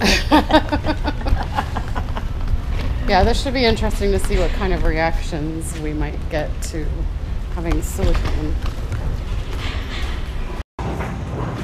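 Stroller wheels rattle and roll over pavement.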